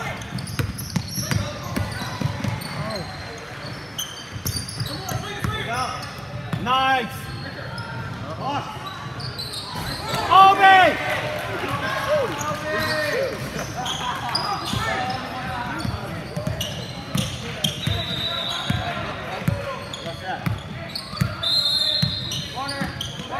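Young players shout to each other across the court.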